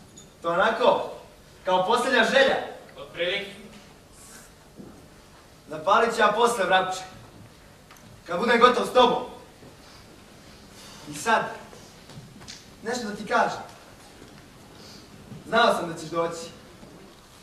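Two young men speak in turns, their voices carrying in a large hall.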